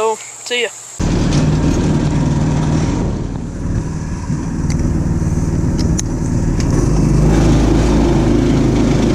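A small go-kart engine rumbles steadily up close.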